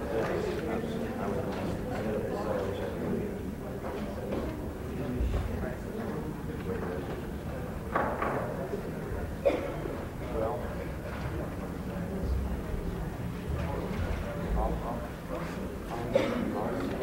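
Many people chat quietly in a large room.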